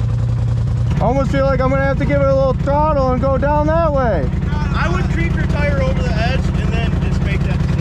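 A young man talks loudly and with animation close by.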